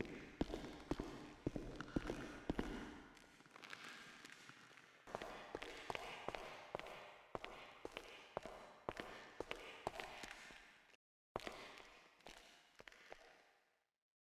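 Footsteps click on a hard floor in a large echoing hall.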